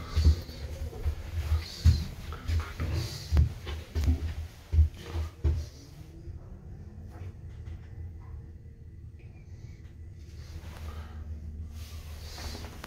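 A lift hums low and steadily as it travels.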